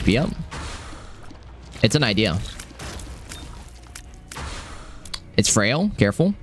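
Electronic game sound effects pop and splat.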